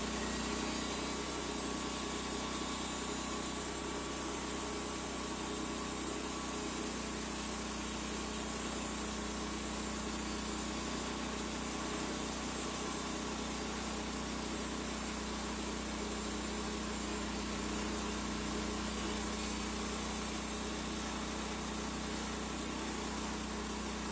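A petrol engine drones steadily.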